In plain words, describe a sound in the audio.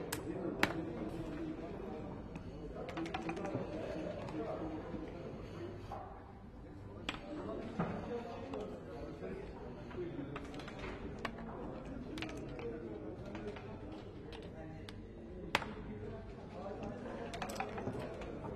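Checkers click and slide on a wooden board.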